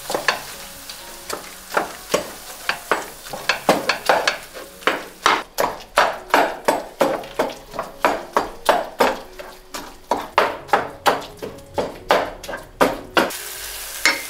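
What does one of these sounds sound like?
A wooden masher pounds food in a metal pan with rapid thuds.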